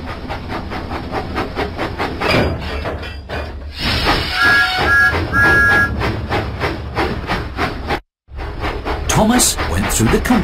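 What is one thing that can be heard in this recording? A small steam locomotive chuffs along the track.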